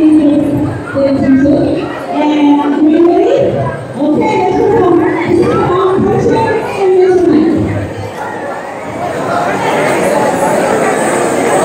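A crowd murmurs and chatters in the background.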